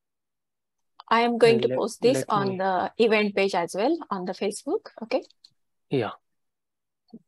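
A woman speaks warmly over an online call.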